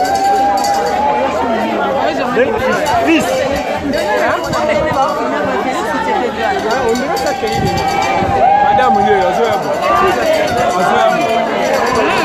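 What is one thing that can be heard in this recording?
Many people talk and shout over one another nearby.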